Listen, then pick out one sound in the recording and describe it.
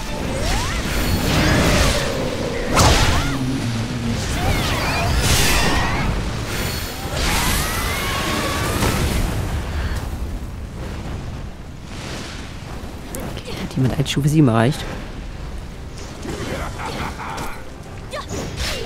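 Blades clash and strike with sharp impacts.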